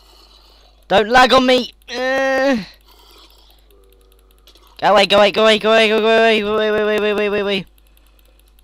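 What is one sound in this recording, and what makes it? A zombie groans loudly in a low, rasping voice.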